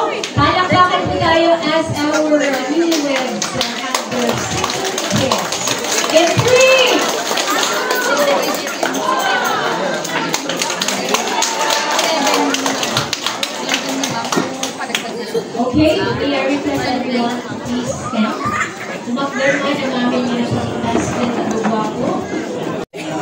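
A crowd of men and women chatter in a large, echoing hall.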